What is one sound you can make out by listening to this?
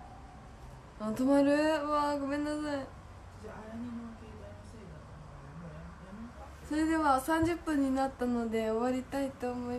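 A young woman speaks brightly and animatedly close to the microphone.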